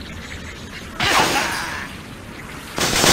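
A bird is flung from a slingshot with a stretchy twang.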